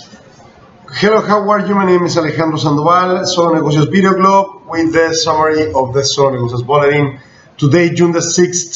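A middle-aged man speaks calmly and steadily close to a microphone.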